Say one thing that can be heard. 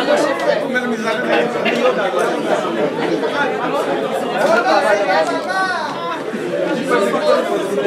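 A crowd of men and women chatter and call out nearby.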